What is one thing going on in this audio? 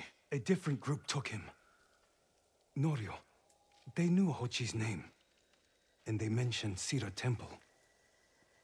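A man speaks calmly and gravely, close by.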